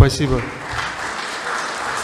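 An elderly man speaks briefly into a microphone.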